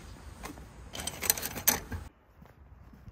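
A metal mailbox flap clatters.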